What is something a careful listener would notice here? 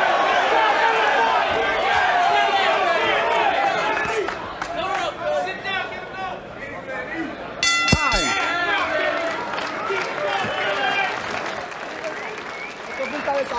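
A large crowd cheers and shouts loudly in an arena.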